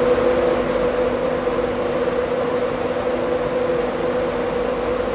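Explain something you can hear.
A diesel locomotive engine hums steadily.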